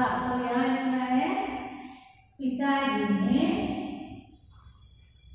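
A woman speaks clearly and with animation, close by.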